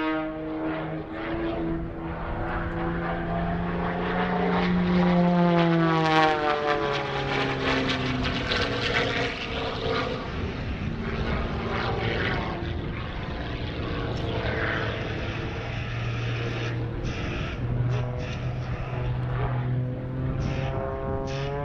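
A small propeller plane's engine drones overhead, rising and falling in pitch as it loops.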